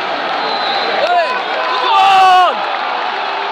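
A man nearby shouts loudly.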